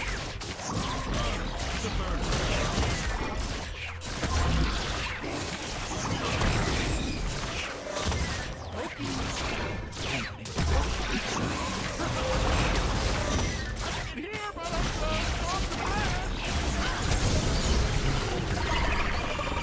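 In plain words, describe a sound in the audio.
Game spell effects whoosh and clash in a fight.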